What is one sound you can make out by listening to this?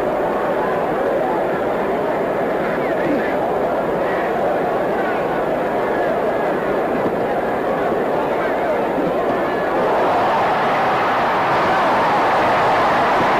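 A large arena crowd roars, swelling louder near the end.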